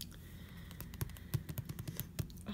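Fingers tap on a paperback book's cover.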